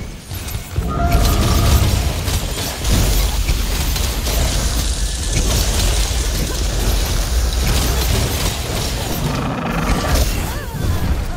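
Fire crackles and roars steadily.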